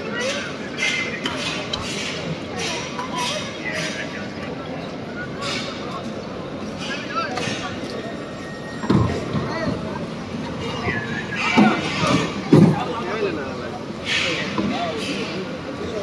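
A crowd of men and women murmur and talk all around, close by.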